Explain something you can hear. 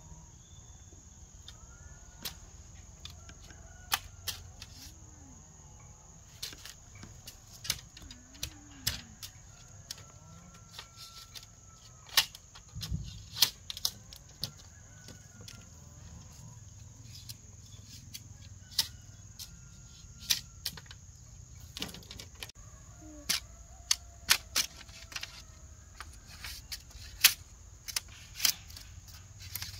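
A machete chops into bamboo with sharp, uneven knocks.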